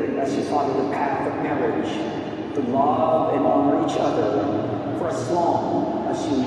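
A man speaks calmly at a distance, echoing through a large hall.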